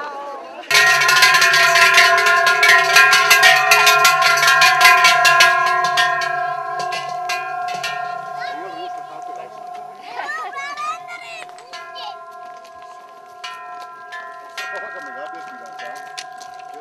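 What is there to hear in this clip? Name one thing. Large cowbells clang and ring loudly in a steady rhythm.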